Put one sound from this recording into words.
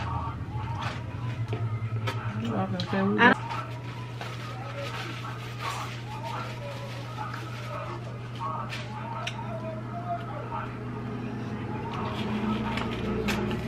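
Plastic food containers rustle and creak.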